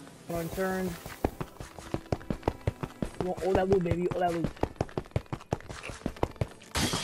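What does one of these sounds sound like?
Quick footsteps patter over stone.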